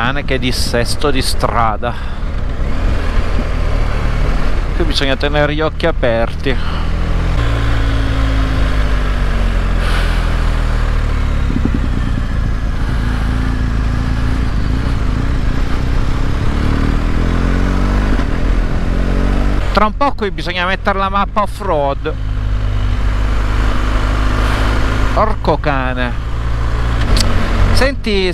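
A motorcycle engine hums steadily and changes pitch as it speeds up and slows down.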